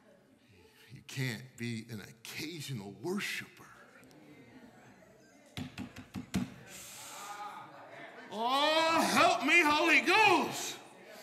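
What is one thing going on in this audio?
A man preaches with animation into a microphone in an echoing hall.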